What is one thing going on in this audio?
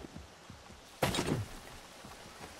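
A heavy thud sounds as a body lands on the ground.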